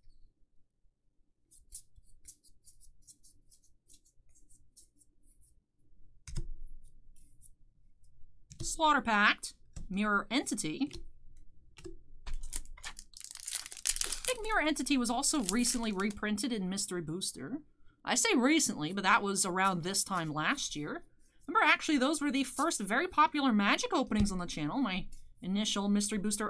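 Playing cards slide and flick against each other.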